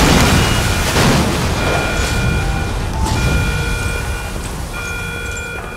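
Water rushes and churns loudly nearby.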